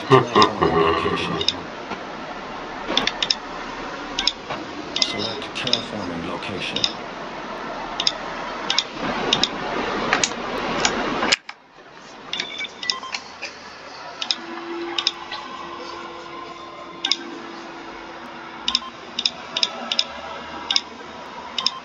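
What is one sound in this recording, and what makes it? Short electronic clicks sound as menu buttons are pressed.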